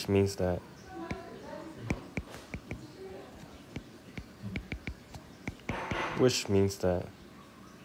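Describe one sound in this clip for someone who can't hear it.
A stylus taps and scratches softly on a tablet's glass.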